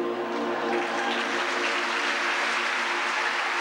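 A large male choir sings a held chord in an echoing hall, then stops.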